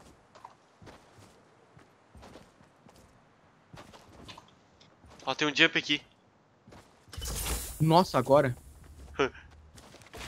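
Footsteps tap quickly on hard ground.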